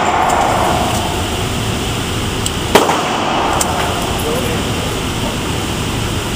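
Metal clicks as a pistol is handled and reloaded.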